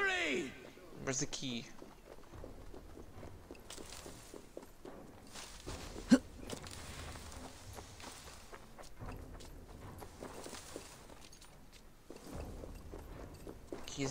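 Footsteps patter on stone and rustle through plants.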